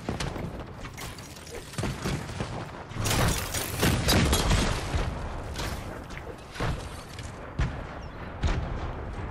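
Building pieces clatter and knock rapidly into place.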